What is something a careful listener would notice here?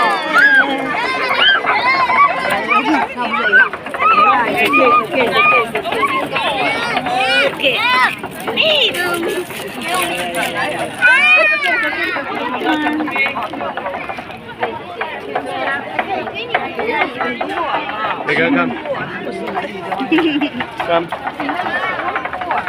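A crowd of children and adults chatters and shouts excitedly close by.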